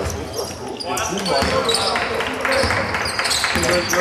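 Basketball shoes squeak on the hardwood floor.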